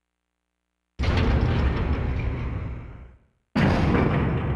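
Heavy metal doors slide apart with a loud rumble.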